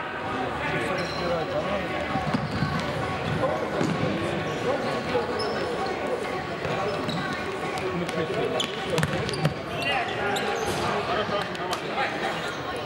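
Men shout to one another across a large echoing hall.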